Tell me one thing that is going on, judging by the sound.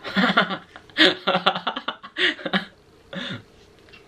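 A young person laughs.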